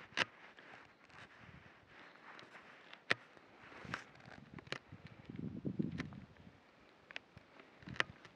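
A person handles gear, making sharp clicks and rustles.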